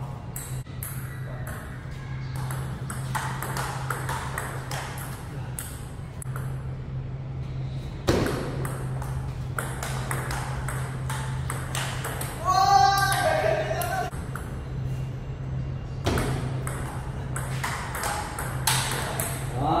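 A ping pong ball clicks back and forth on paddles and a table in a steady rally.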